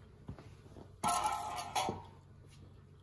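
A metal block scrapes and rattles against a cardboard box.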